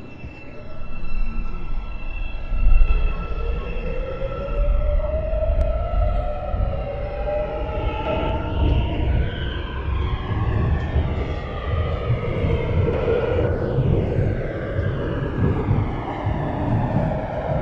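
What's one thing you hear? An electric train motor whines, rising in pitch as it speeds up.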